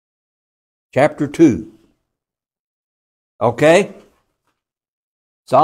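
An elderly man speaks calmly in short phrases.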